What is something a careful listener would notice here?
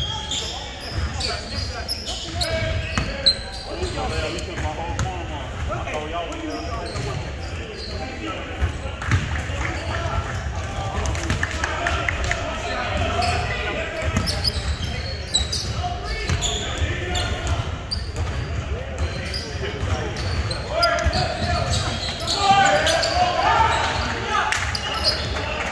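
Voices of players and onlookers chatter throughout a large echoing gym.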